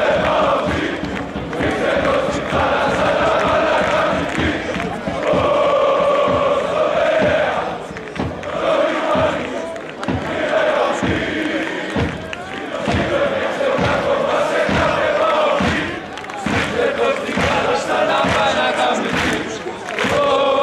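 A large stadium crowd chants loudly in unison.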